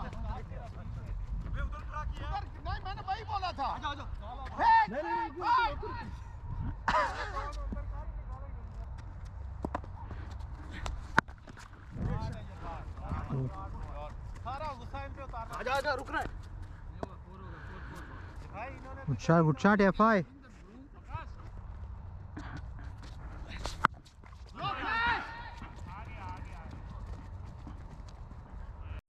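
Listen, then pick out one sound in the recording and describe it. Men shout and call to each other outdoors across an open field.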